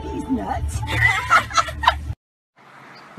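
A man laughs loudly up close.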